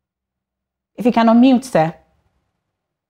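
A woman speaks briefly and calmly into a microphone.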